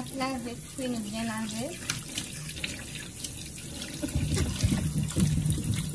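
Hands rub and squeak on wet vegetables.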